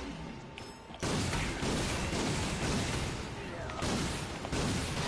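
Blaster shots fire rapidly with loud bursts.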